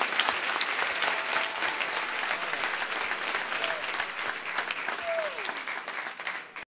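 A crowd chatters and claps.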